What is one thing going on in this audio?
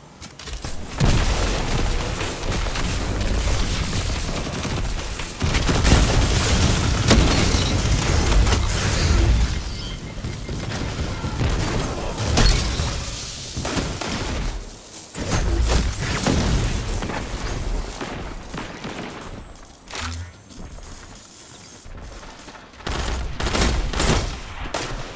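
Gunfire and explosions boom in a video game.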